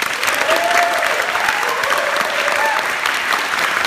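Audience members cheer and whoop.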